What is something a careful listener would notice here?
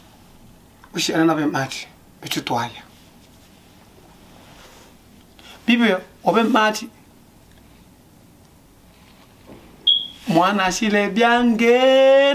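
A young man speaks expressively close by, in short bursts with pauses.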